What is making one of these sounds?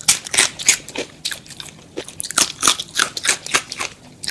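Fingers pick at crispy fried chicken batter with crackling sounds.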